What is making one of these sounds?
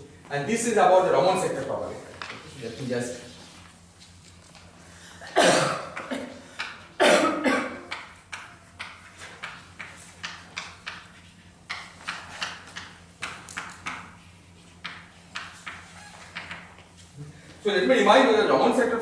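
A man speaks calmly in a large echoing hall.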